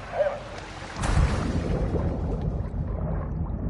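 Bubbles gurgle in a muffled rush underwater.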